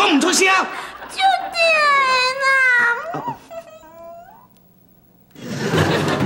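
A middle-aged man speaks with surprise close by.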